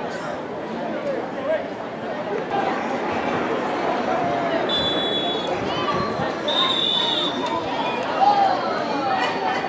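Young women call out to each other outdoors at a distance.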